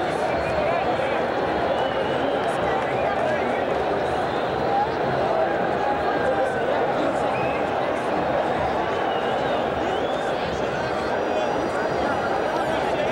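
A large stadium crowd sings and chants loudly all around, outdoors.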